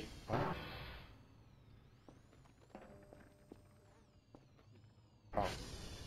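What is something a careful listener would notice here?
A small robot warbles with a gliding electronic tone.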